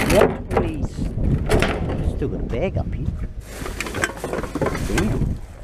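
Plastic bottles and cans clatter together.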